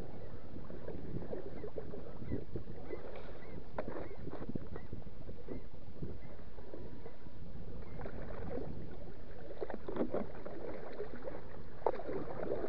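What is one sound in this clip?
Small waves lap against a kayak's hull.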